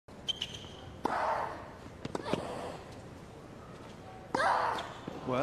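A tennis ball is struck sharply with a racket, back and forth.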